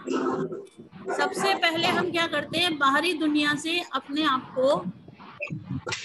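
A boy sings into a microphone.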